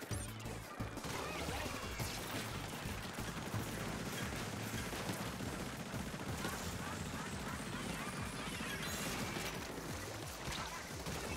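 Rapid bursts of paint spraying and splattering.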